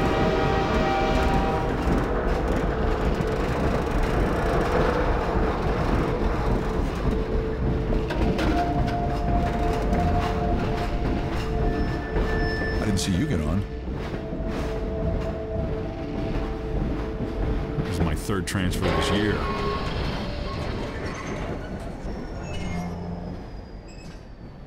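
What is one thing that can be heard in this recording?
A train car rumbles and rattles steadily along the tracks.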